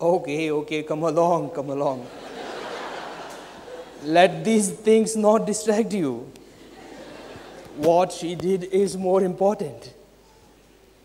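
A man speaks theatrically on stage, his voice carrying in a large hall.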